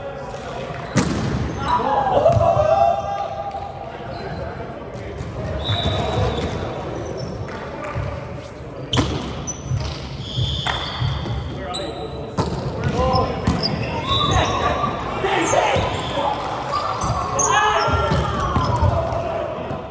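A volleyball is struck by hand, echoing through a large hall.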